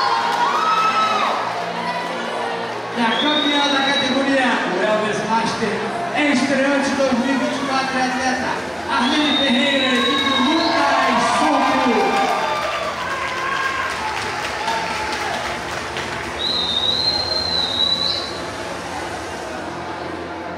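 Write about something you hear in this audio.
A man speaks with animation through a loudspeaker in a large echoing hall.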